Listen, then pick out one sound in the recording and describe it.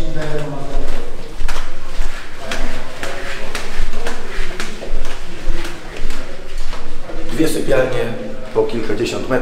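Sandals slap on a hard floor as a man walks.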